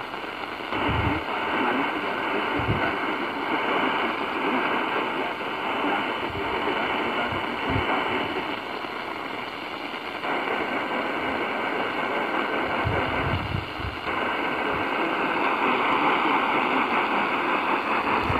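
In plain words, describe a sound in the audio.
A handheld radio plays a station through a hissing, crackling signal.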